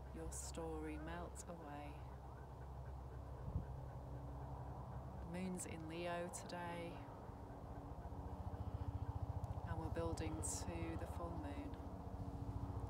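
A middle-aged woman speaks calmly and softly close by, with pauses.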